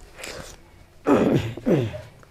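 A woman slurps loudly.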